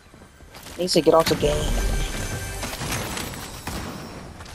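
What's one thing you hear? A chest creaks open with a bright, shimmering jingle.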